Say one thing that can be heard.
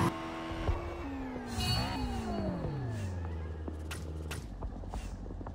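A car engine revs and then winds down.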